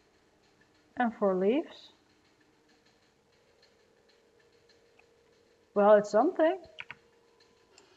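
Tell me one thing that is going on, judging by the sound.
A young woman speaks briefly with animation into a microphone.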